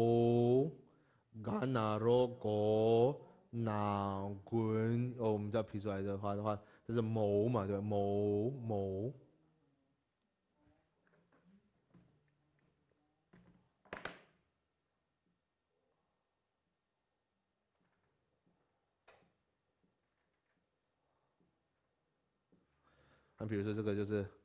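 A man speaks calmly and clearly, as if teaching, close by.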